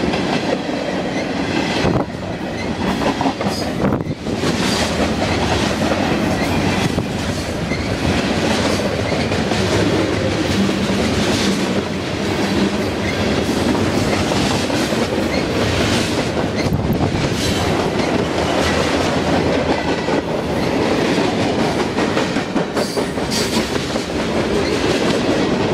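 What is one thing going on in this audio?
A freight train rumbles past close by, loud and steady.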